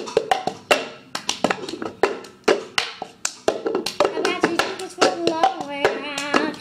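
A plastic cup knocks against a table in a quick rhythm.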